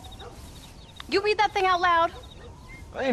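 A woman speaks with a teasing tone, close by.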